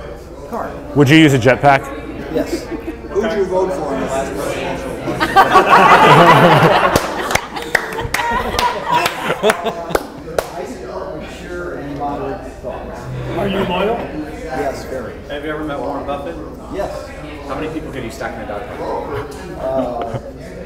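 A group of men and women talk and laugh together nearby.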